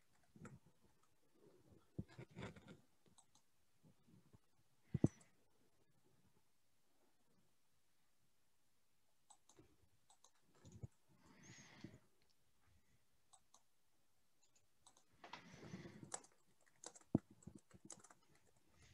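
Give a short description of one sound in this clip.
A woman speaks softly and briefly into a headset microphone, with long pauses.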